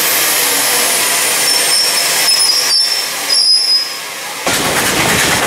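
A steam locomotive hisses loudly at rest.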